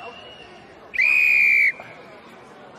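A referee blows a loud, short whistle.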